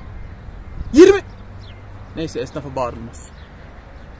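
A young man speaks with animation close to the microphone, outdoors.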